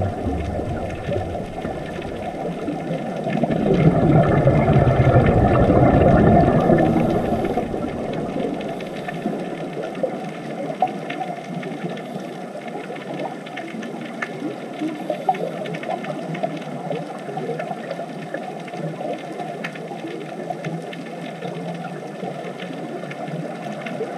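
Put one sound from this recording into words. Air bubbles gurgle and bubble from scuba divers breathing underwater.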